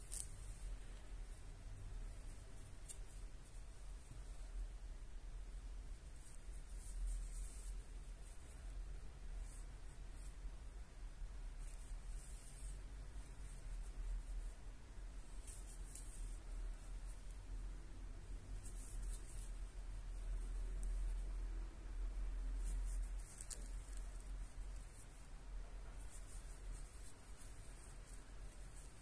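Yarn rustles softly as a crochet hook pulls it through loops.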